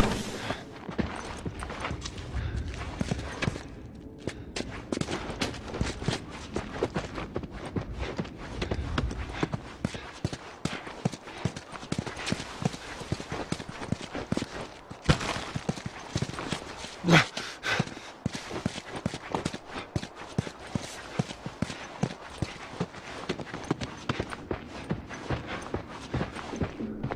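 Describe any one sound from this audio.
Footsteps crunch and thud across a floor.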